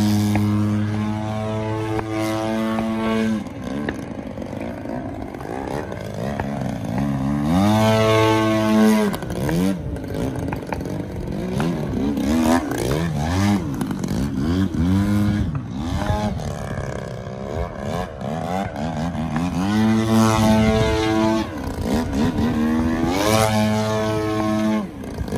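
A model plane's engine whines loudly, revving up and down as the plane swoops overhead.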